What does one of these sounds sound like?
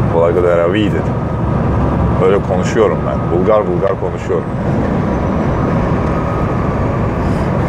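A truck engine rumbles steadily while driving on a road.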